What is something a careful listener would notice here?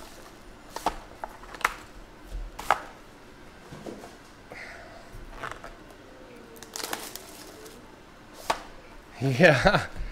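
Foil-wrapped card packs rustle and tap as they are handled.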